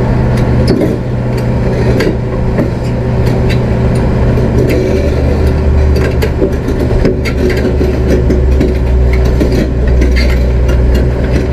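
A large diesel engine rumbles steadily close by.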